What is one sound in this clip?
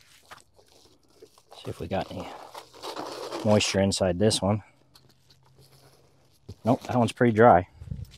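Foil insulation crinkles as it is handled.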